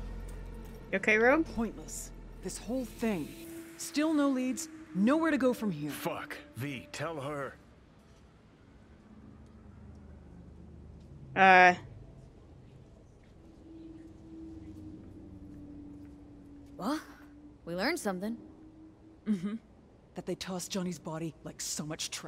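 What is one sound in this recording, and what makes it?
A young woman speaks in a calm, weary voice.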